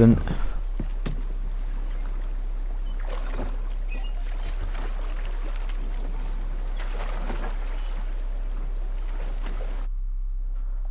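Oars splash softly in calm water.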